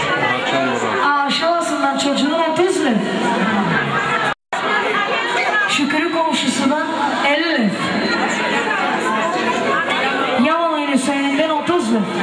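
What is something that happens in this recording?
A young woman sings loudly through a microphone and loudspeaker.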